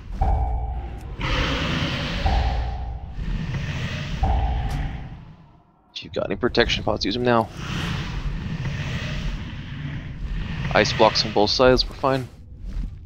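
Magic spells whoosh and shimmer in a game battle.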